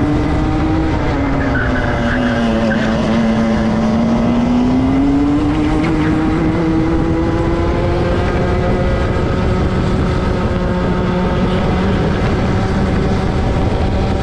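Wind rushes past in a steady roar.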